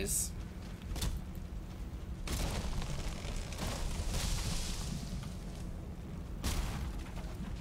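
An axe chops into a tree trunk with dull thuds.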